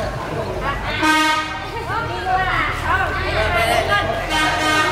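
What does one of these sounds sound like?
A small child calls out in a high voice.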